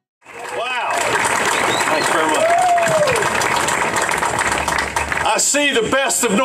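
A crowd claps and cheers outdoors.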